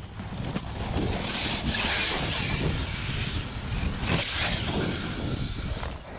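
Tyres crunch and skid over loose dirt.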